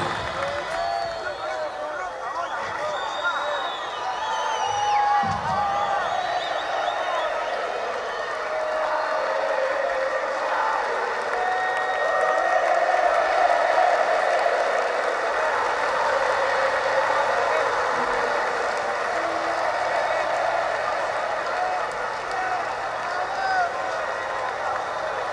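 A large crowd cheers and whistles loudly in a big arena.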